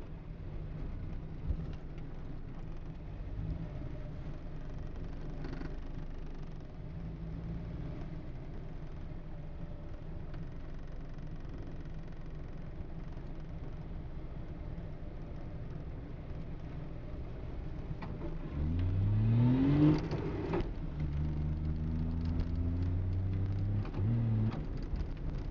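A three-cylinder two-stroke car engine hums from inside the car.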